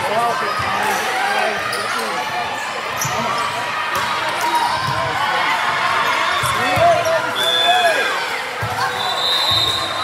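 Young women shout and call out to one another in a large echoing gym.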